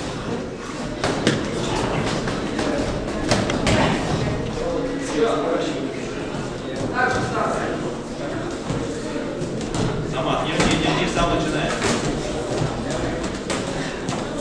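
Gloved punches thud in quick bursts.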